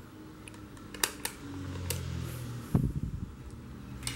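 Hands set a small device down on a table with a light knock.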